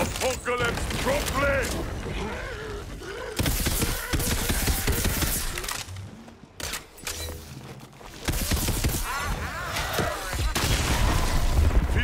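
An explosion bursts with a loud boom and scattering debris.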